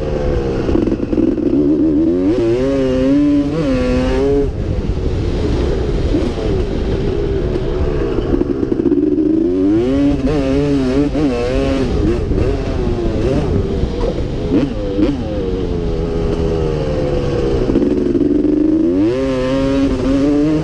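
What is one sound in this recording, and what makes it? A dirt bike engine roars and revs up and down close by.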